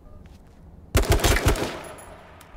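A rifle fires a quick burst of loud shots nearby.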